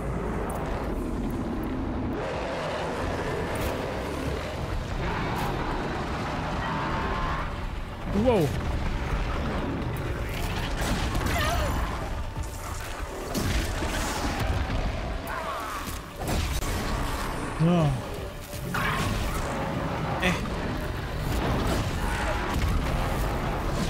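Metal clanks and crashes in a fight.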